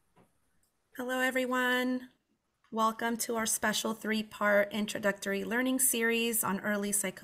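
A woman speaks calmly through an online call microphone.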